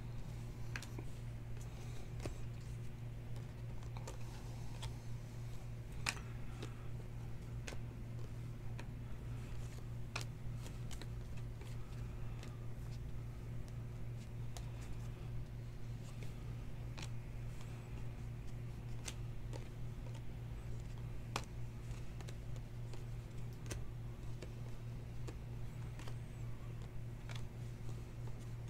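Trading cards flick and slap against each other as they are shuffled.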